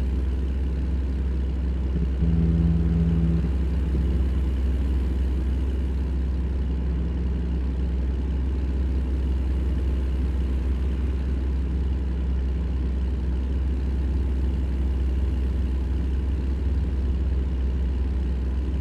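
A truck's diesel engine drones low and steady from inside the cab.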